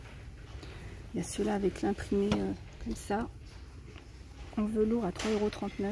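Soft fabric rustles as a hand handles it.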